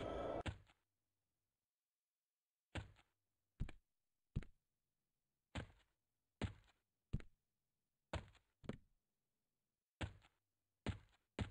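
Footsteps thud on soft ground at an uneven pace.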